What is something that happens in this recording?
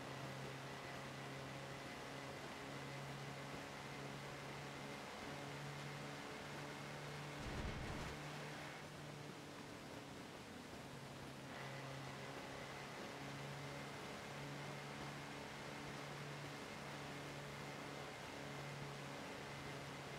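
An old jeep engine hums steadily as it drives along.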